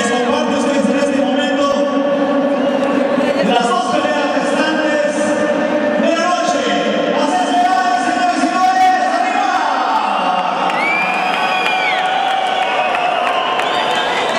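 A large crowd sings together loudly in an echoing hall.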